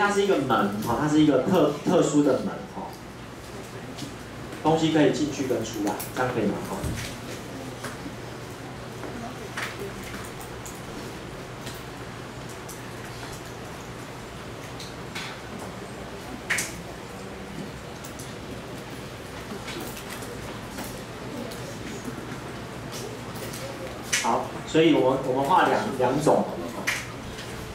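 A young man speaks calmly through a microphone, echoing slightly.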